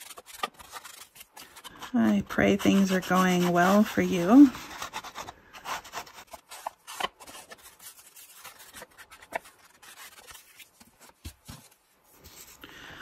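A foam blending tool dabs and scrubs against paper.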